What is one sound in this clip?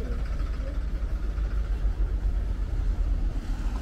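A bus engine idles close by with a low rumble.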